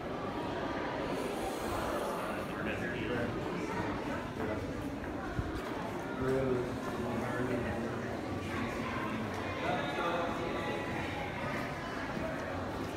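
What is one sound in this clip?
Many voices of men and women murmur and chatter in a large, echoing room.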